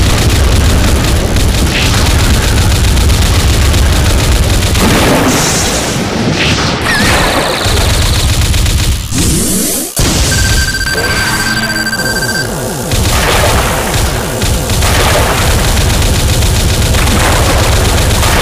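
Water splashes loudly as a big fish thrashes.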